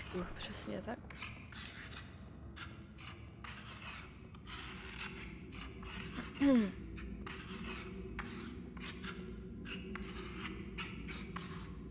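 Small footsteps patter on a wooden floor.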